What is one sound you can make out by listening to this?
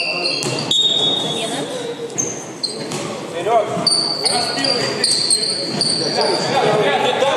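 Men call out to each other across a large echoing hall.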